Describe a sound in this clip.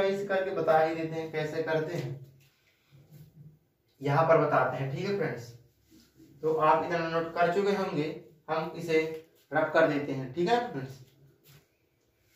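A man explains calmly in a room, close by.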